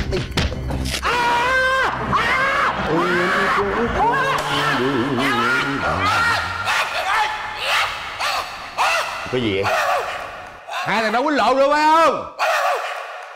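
A middle-aged man speaks with animation.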